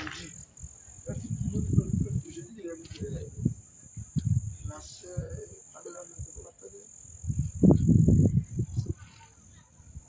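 A man speaks out loud to a small group outdoors, with pauses.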